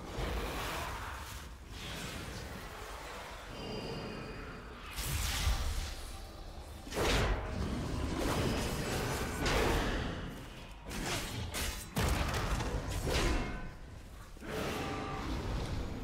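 Magic spells whoosh and burst in quick succession.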